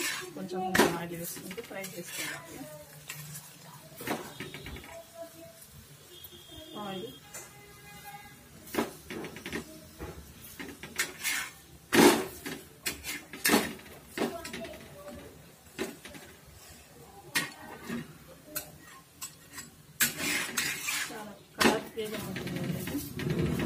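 A metal spatula scrapes and taps against a hot pan.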